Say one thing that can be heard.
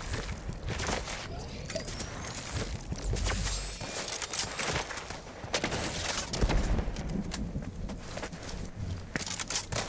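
Footsteps crunch over rocky ground.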